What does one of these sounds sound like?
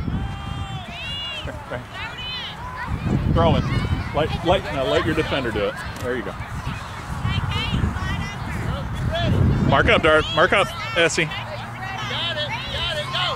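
Young girls shout and call out nearby, outdoors.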